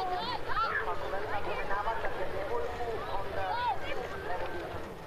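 A crowd of people chatters and shouts at a distance.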